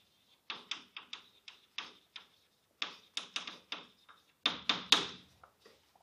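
Chalk taps and scrapes on a blackboard in quick strokes.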